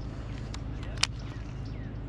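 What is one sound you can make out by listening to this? A fishing reel clicks close by.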